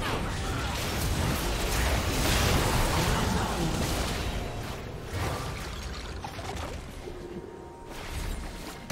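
Magic blasts and hits crash and crackle in a fast, busy battle.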